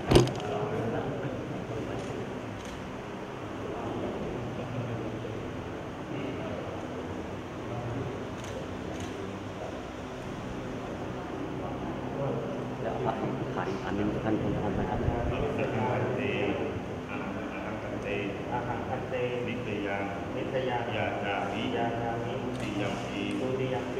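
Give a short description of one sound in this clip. Several men talk in low, calm voices nearby.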